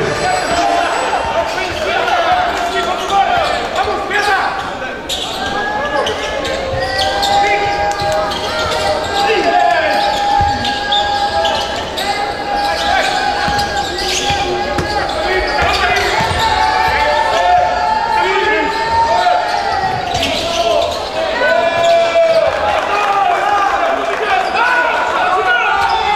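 Basketball shoes squeak sharply on a wooden court in an echoing hall.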